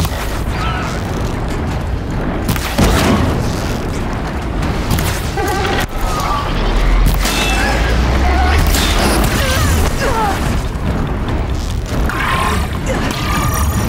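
Large metal wings flap with heavy whooshes.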